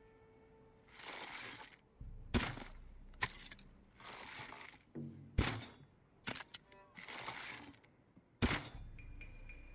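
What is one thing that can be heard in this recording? A bow string twangs as arrows are loosed.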